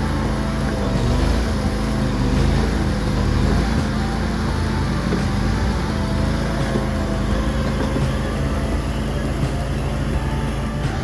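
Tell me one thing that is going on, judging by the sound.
A compact tracked loader's diesel engine runs with a steady, loud drone.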